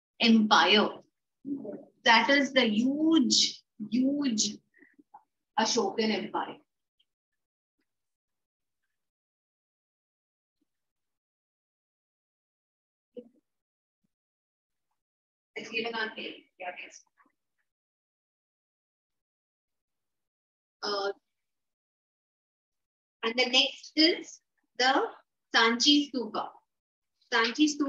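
A woman speaks clearly into a nearby microphone, in bursts with pauses, as if teaching.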